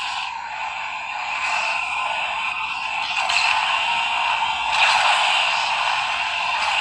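A racing game's car engine roars through a small phone speaker.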